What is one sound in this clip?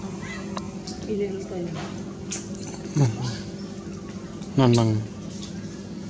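A baby monkey squeals in short, falling cries close by.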